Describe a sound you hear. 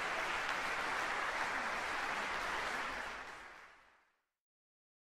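An audience applauds in a large hall, then the applause fades away.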